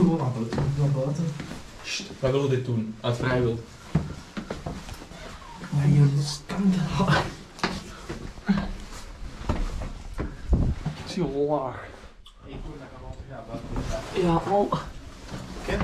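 Footsteps scuff on stone stairs.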